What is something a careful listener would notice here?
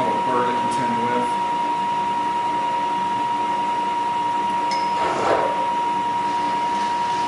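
A milling machine whines steadily as its cutter bites into metal.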